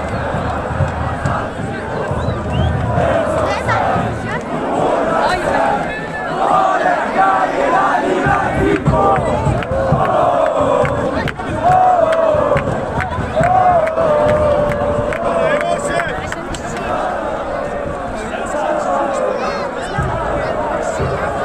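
A huge crowd of fans chants and sings loudly in a large open stadium.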